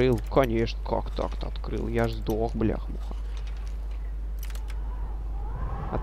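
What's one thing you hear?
A metal lock pick scrapes and clicks inside a lock.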